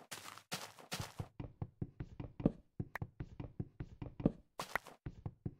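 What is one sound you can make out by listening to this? Wood is chopped with quick, repeated knocks.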